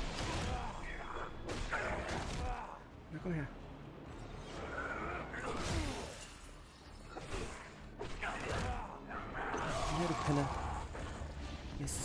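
A sword clashes against a shield and blade.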